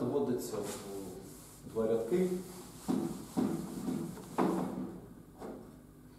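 A cloth rubs and wipes across a chalkboard.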